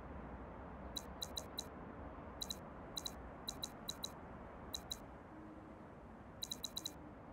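Quick, light interface ticks sound in short bursts.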